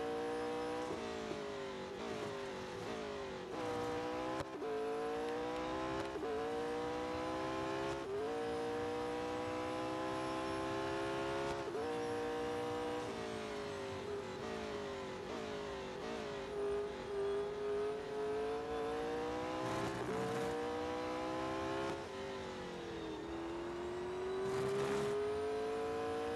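A racing car engine roars at high revs, rising through the gears and dropping as it slows for corners.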